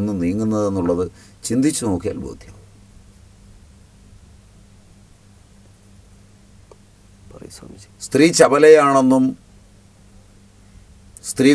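An elderly man speaks slowly and with feeling, close to a microphone, with long pauses.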